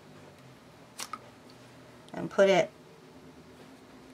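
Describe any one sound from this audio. A plastic pen cap clicks as it is pulled off.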